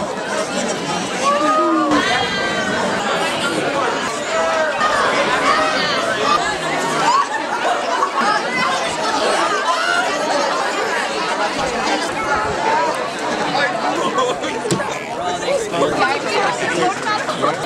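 A crowd of teenagers chatters loudly outdoors.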